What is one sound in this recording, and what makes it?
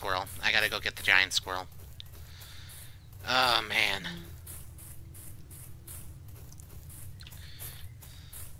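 Footsteps crunch steadily on dry leaves.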